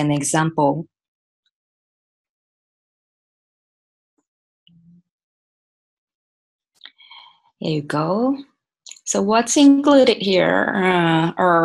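A woman speaks calmly through an online call microphone, with pauses.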